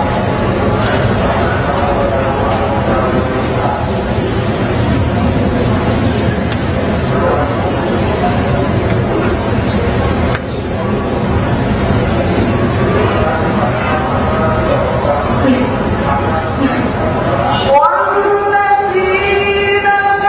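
A young man chants melodically into a microphone, heard through loudspeakers in a large echoing hall.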